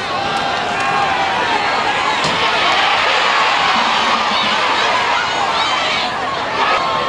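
A crowd of spectators cheers outdoors, swelling loudly during a play.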